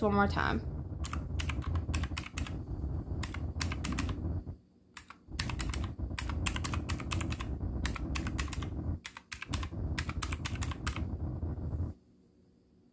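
Calculator keys click as they are pressed in quick taps.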